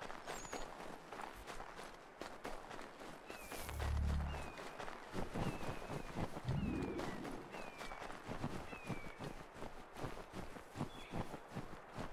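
Footsteps crunch quickly through snow.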